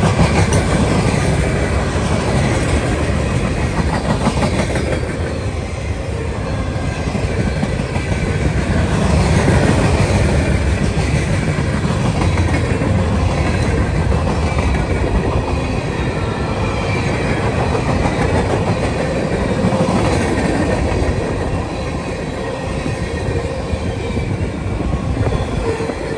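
Steel wheels clack rhythmically over rail joints.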